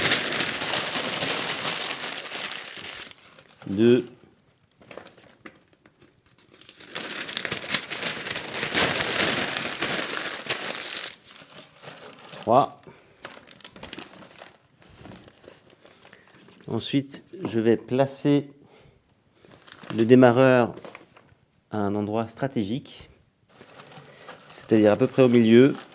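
Paper crumples and rustles in a hand.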